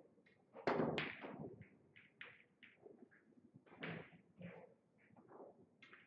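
Billiard balls knock together on a table.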